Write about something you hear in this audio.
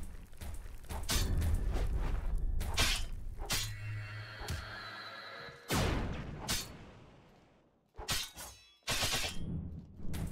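Metal blades clash and strike with sharp hits.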